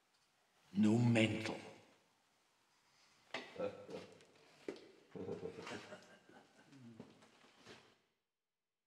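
A man speaks in a low, menacing voice close by.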